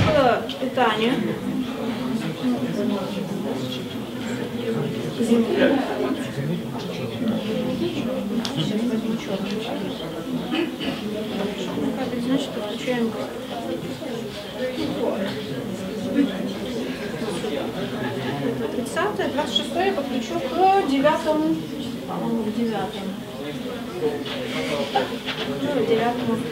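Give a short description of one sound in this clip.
A young woman talks quietly nearby.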